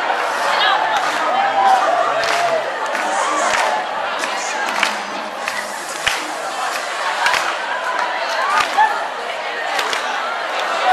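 Hands clap sharply now and then.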